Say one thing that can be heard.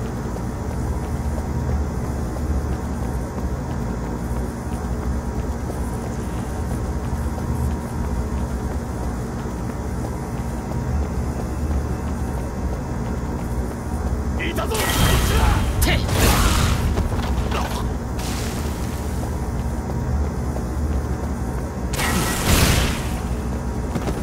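Music plays steadily throughout.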